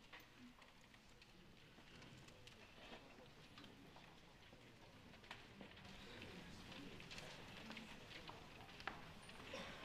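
An audience murmurs and stirs in a large echoing hall.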